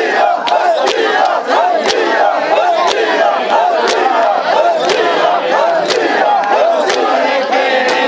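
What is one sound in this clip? Men beat their chests in a steady rhythm.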